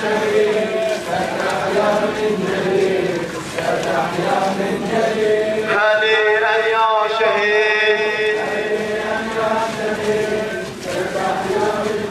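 A crowd of men chant together outdoors.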